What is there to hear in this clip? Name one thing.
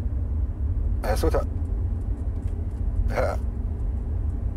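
A middle-aged man speaks a few short words into a phone, close by.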